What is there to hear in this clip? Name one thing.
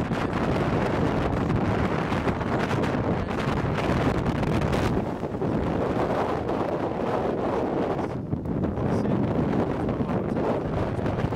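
Strong wind roars and buffets loudly outdoors.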